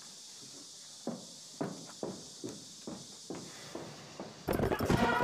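Footsteps tap on a wooden floor, walking away.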